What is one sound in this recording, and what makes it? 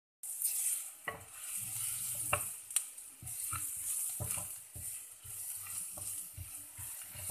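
A spatula scrapes and knocks against a clay pot while stirring.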